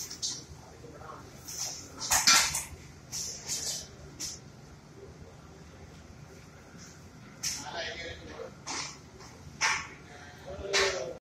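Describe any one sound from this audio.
Metal utensils clank and scrape against pans.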